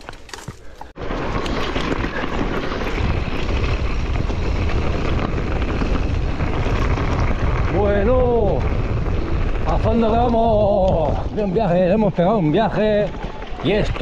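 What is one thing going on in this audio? Bike tyres roll fast over loose gravel with a steady rumble.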